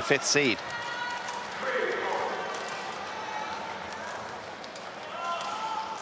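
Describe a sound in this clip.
A large indoor crowd murmurs in an echoing hall.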